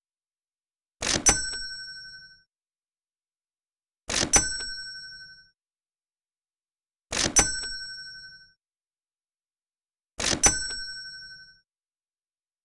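A bright chime rings out, one after another at even intervals.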